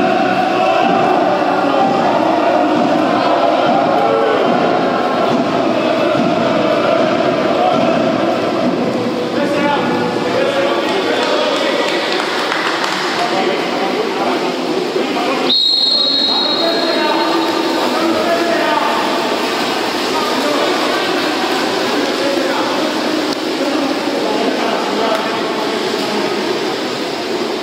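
Players splash and churn the water as they swim.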